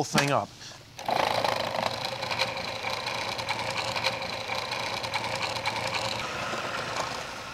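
A food processor whirs loudly as it blends.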